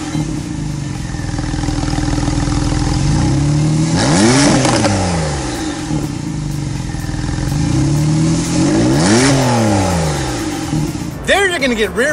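A sports car engine revs hard twice from the exhaust, rising and falling.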